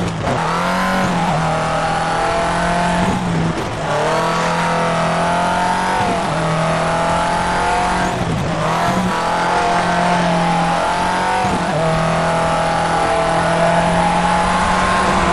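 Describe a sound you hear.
Gravel sprays and crunches under tyres.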